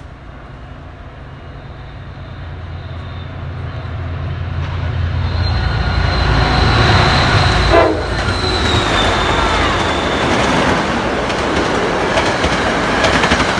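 A diesel commuter train approaches and roars past at speed.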